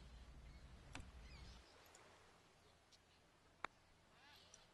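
A soft interface click sounds as a menu opens and closes.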